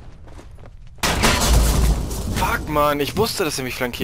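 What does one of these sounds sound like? Gunfire rattles close by in a short burst.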